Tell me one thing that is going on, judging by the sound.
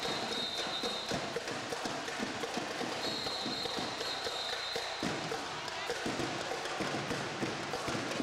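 A marching band drums a fast beat in a large echoing hall.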